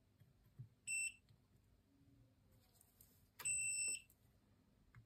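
A multimeter beeps in short, high tones.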